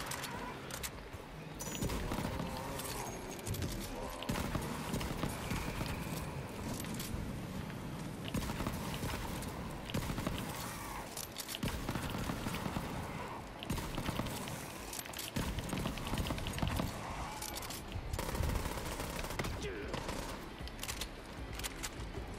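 Video game guns fire in rapid bursts.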